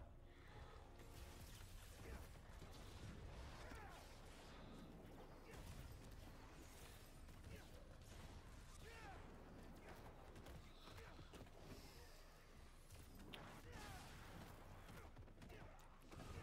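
Punches and kicks thud in a fast fight.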